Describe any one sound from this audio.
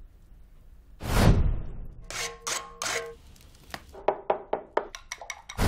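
A tool scrapes against a clay pot.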